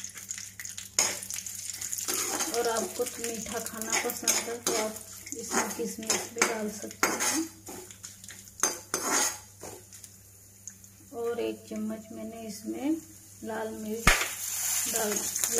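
A metal spatula scrapes and clinks against a wok while stirring.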